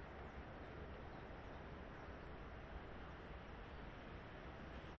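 Wind blows steadily outdoors, buffeting the microphone.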